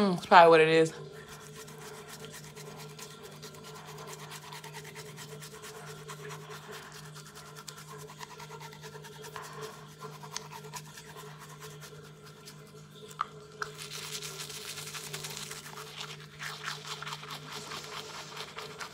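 A toothbrush scrubs against a tongue and teeth.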